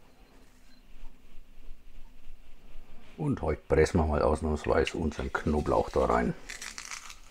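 Fingers crumble dried herbs into a metal bowl.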